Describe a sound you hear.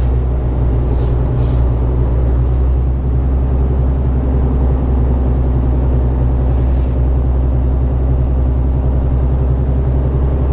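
Tyres roll over a bumpy country road.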